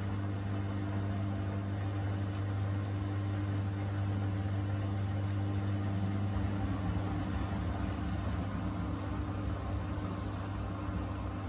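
Water sloshes and swirls inside a washing machine drum.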